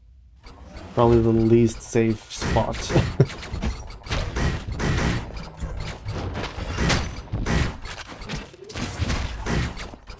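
Rapid gunshots and blows crackle in a fight.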